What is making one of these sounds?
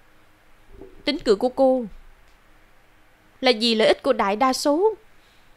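A young woman speaks calmly and earnestly nearby.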